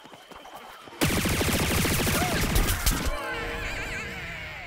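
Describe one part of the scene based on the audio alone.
Rapid cartoonish blaster shots fire in quick bursts.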